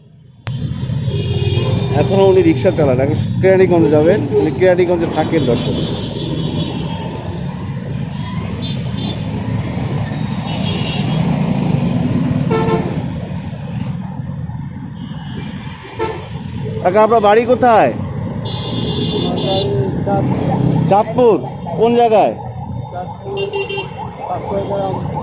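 Street traffic rumbles steadily nearby.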